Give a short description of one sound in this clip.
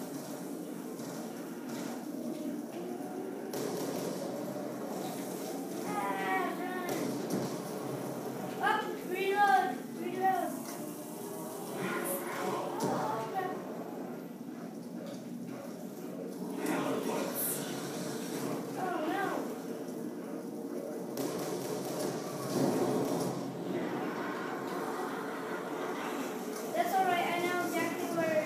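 Rapid gunfire plays through a television speaker.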